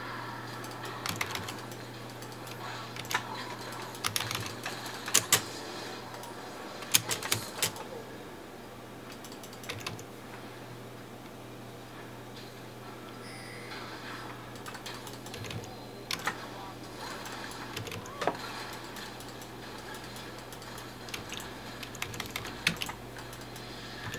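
Sharp game sound effects of spells and hits play from a small speaker in short bursts.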